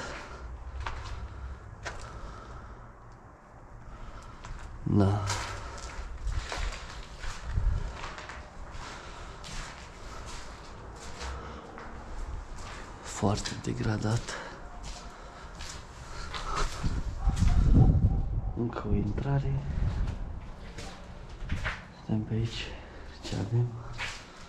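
Footsteps crunch over debris and grit on a hard floor.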